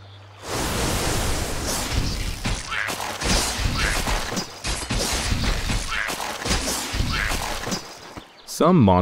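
Weapons clash and strike in a noisy fight.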